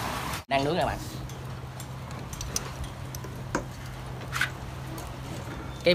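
Metal tongs click against a grill.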